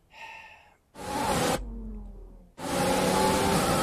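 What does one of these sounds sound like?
A racing car engine roars loudly.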